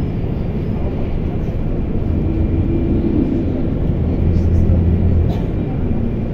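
A passing bus roars by close outside.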